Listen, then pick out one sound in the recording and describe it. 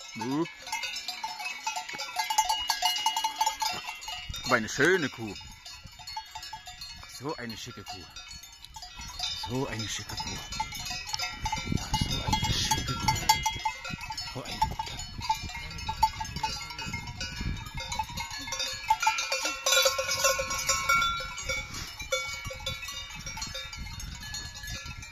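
Cowbells clang and jingle nearby.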